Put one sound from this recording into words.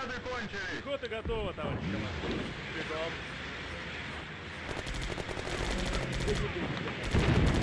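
Tank engines rumble and clank as the tanks move.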